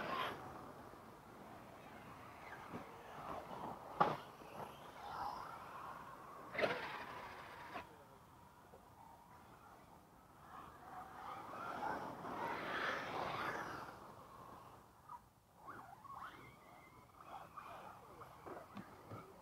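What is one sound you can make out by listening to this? Small electric toy cars whine as they race over dirt.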